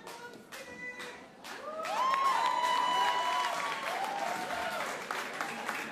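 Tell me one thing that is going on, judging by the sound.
A group of people claps.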